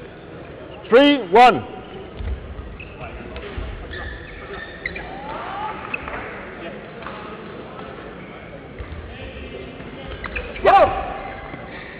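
Sports shoes squeak sharply on an indoor court floor.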